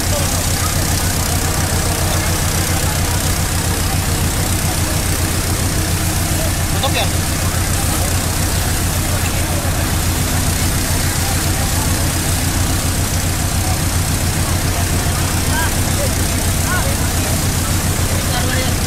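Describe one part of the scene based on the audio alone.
A fire truck pump engine drones low and steady.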